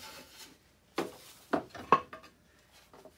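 Wooden tools knock on a workbench.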